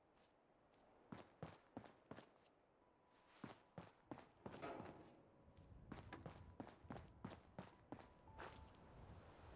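Footsteps tread steadily across a wooden floor.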